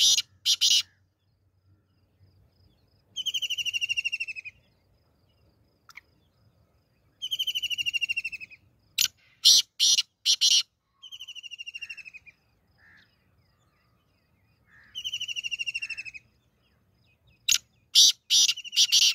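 A bird gives sharp, loud chirps in short bursts.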